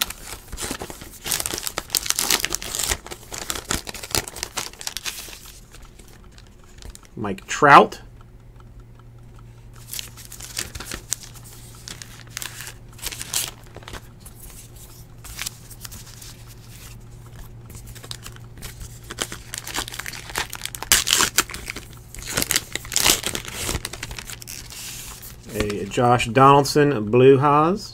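Paper and card sleeves rustle and slide close by.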